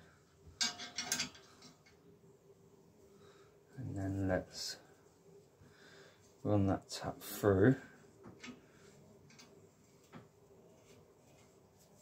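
A metal tool clicks against metal parts.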